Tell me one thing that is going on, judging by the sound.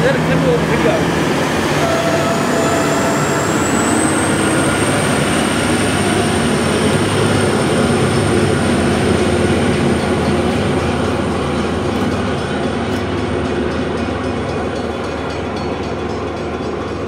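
A train's wheels squeal on the rails with a rising whine.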